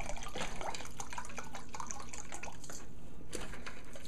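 Liquid pours from a jug into a metal pot.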